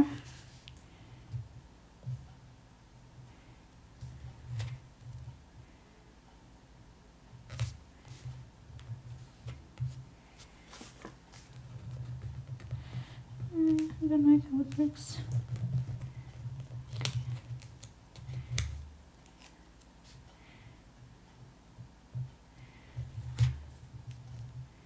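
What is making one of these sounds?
Fingertips tap and rub against paper.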